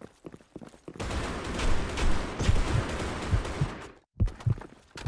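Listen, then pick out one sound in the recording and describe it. A grenade bursts with a loud bang, followed by a long ringing hiss.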